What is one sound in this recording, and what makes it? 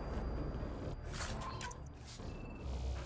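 A soft electronic chime sounds as an item is picked up.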